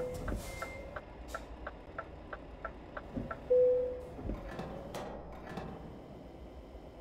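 A truck engine idles with a low rumble, then shuts off.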